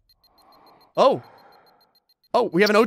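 A bright electronic warning tone chirps in short bursts.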